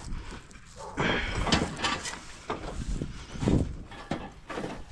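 A digging tool strikes and scrapes the ground.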